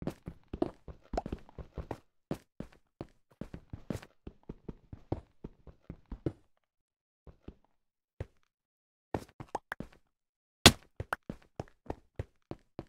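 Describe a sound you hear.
Footsteps tap quickly on stone, with short pauses.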